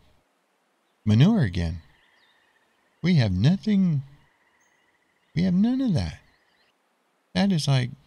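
Sheep bleat loudly several times.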